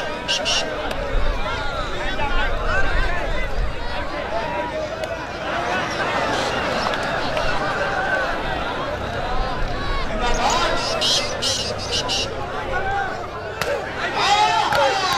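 A large outdoor crowd of men chatters and shouts.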